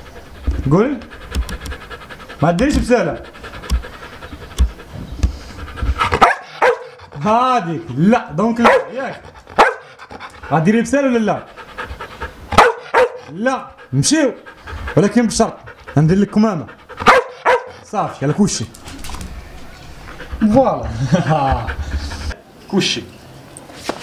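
A dog whines and yowls in short, rising and falling calls, close by.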